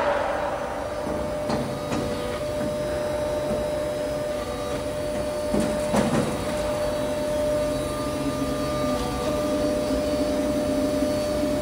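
A metal strip rattles and clatters through a machine.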